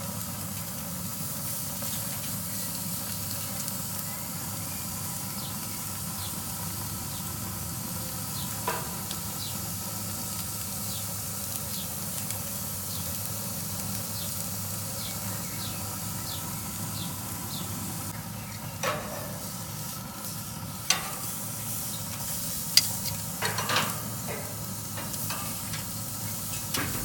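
Meat sizzles steadily on a hot grill.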